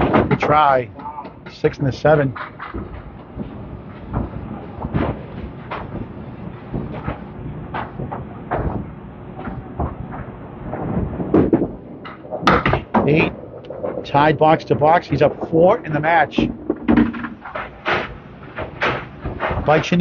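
Bowling pins crash and clatter.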